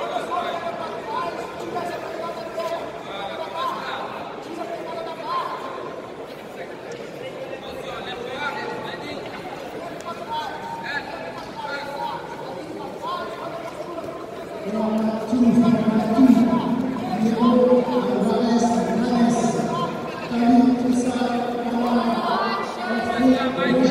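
Men shout instructions loudly in a large echoing hall.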